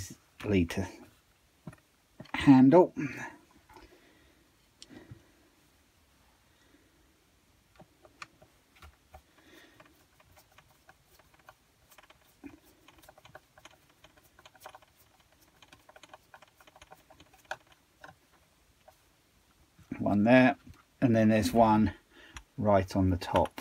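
Hands knock and click against a small engine's plastic casing.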